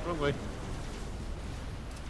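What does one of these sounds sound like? An energy weapon fires with a loud blast.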